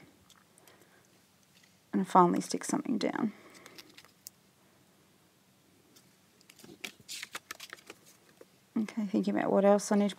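Paper sheets rustle and crinkle as they are handled.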